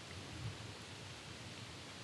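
A kayak paddle dips and splashes in calm water.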